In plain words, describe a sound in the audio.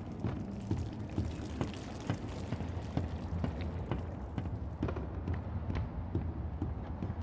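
Footsteps thud steadily on a hollow wooden floor.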